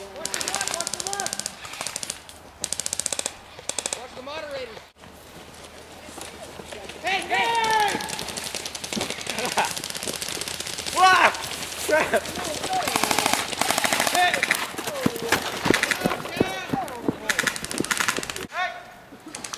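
Guns fire in rapid rattling bursts.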